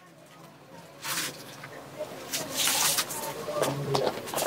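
Cloth rustles as it is handled.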